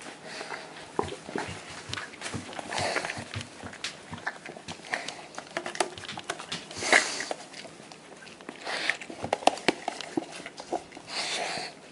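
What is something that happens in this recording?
A plastic cup crinkles and rattles in a hand.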